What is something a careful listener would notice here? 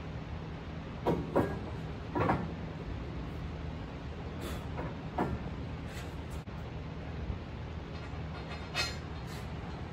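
Metal parts clank on a truck's fifth wheel.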